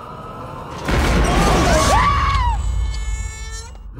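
A woman screams loudly.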